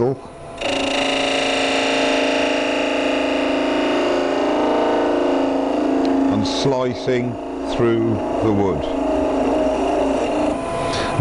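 A wood lathe spins with a steady whine.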